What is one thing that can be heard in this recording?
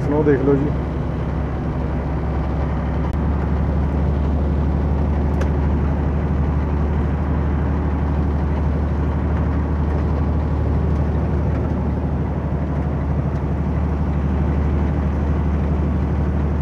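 A truck's engine drones steadily from inside the cab.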